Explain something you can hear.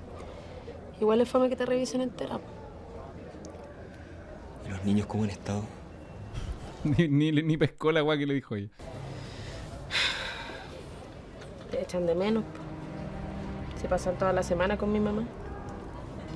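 A young man speaks softly to a young woman.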